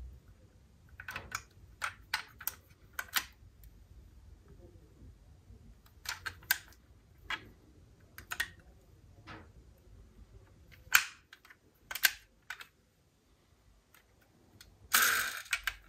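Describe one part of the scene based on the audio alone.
Small plastic doors and hoods on a toy car click open and shut.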